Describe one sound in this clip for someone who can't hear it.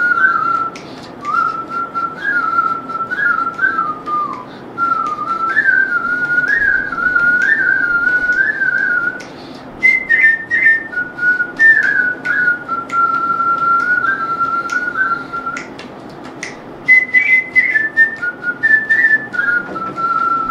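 A flute plays a lively melody over a microphone.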